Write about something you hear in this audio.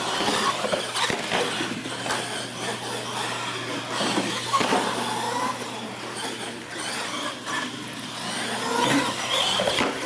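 Plastic wheels thump as a toy truck lands after a jump.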